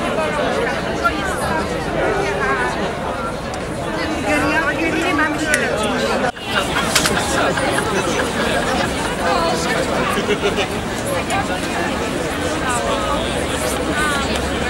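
A large crowd of men and women murmurs and chatters outdoors.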